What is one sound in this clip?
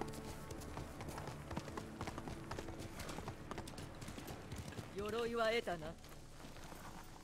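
Horse hooves clop rapidly on the ground.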